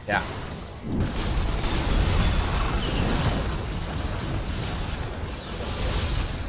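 Video game spell effects burst and clash in a fight.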